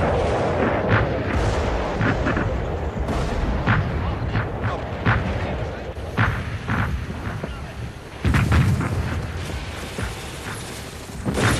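Rifle shots crack repeatedly outdoors.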